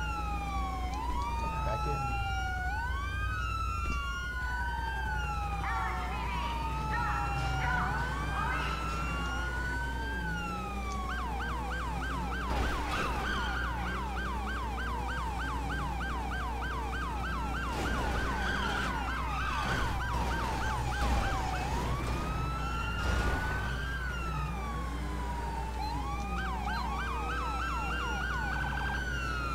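A police siren wails and switches to a fast yelp.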